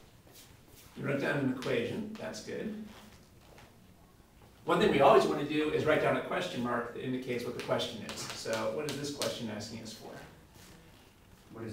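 A man lectures calmly into a nearby microphone.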